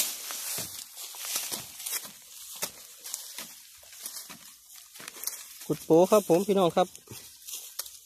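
A blade chops into dry soil and roots.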